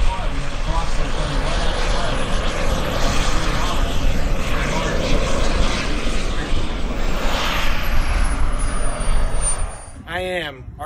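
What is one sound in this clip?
A model jet's turbine roars as the jet taxis on a runway and passes by.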